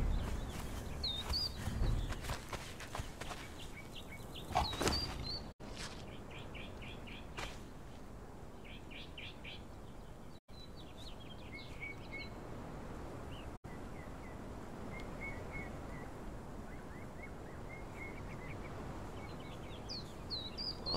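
Footsteps crunch on sand and wooden boards.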